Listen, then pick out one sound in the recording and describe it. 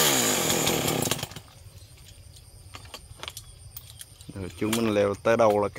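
A chainsaw engine roars close by, then winds down and starts up again.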